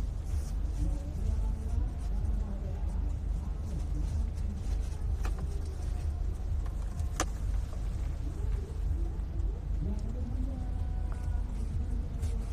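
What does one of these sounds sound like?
A vehicle engine rumbles low and steadily inside a car.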